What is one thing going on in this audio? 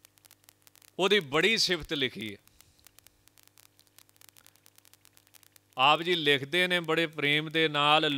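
A man sings slowly into a close microphone.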